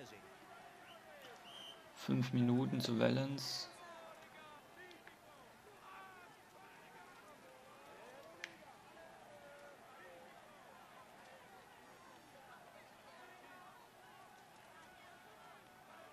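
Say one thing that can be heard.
A crowd cheers and shouts along the roadside.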